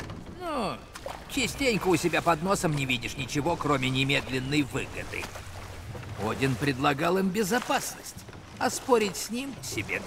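Oars splash and dip in water.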